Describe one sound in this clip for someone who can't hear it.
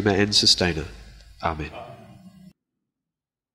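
A man speaks calmly into a microphone in a room with a slight echo.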